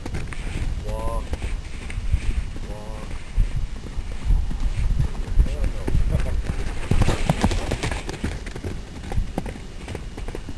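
A horse's hooves thud on soft dirt as it gallops.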